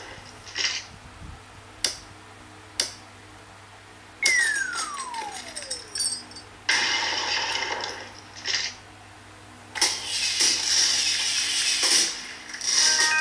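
A game's wrecking ball smashes through blocks with crashing sound effects.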